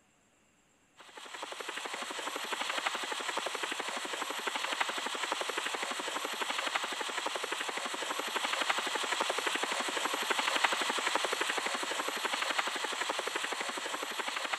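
A cartoon helicopter's rotor chops rapidly and steadily.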